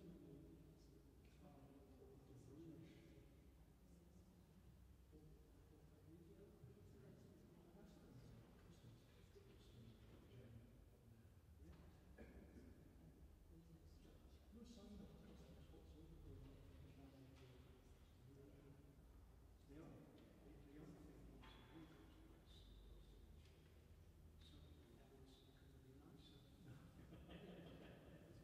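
A pipe organ plays, echoing through a large reverberant hall.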